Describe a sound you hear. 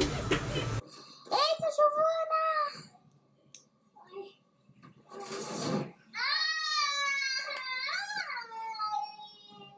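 A young girl cries and wails loudly close by.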